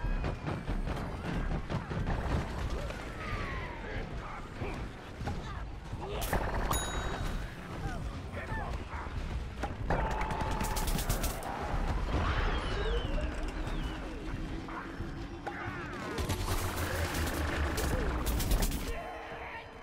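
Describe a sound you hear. Game guns fire rapid shots.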